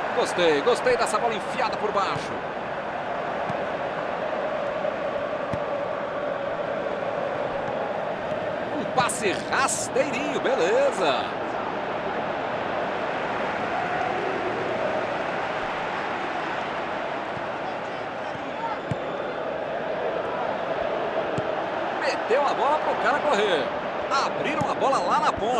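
A large stadium crowd roars and chants steadily.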